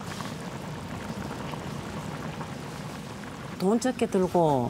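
A pot of stew bubbles and simmers.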